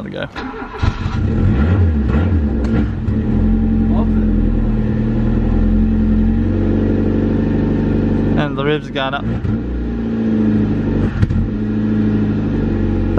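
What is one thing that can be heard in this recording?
A car engine starts and idles with a steady low rumble.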